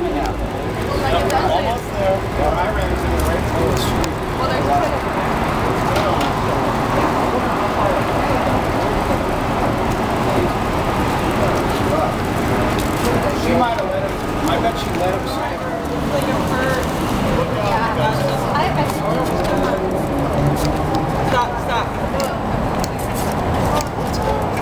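Shoes tap on pavement as people walk.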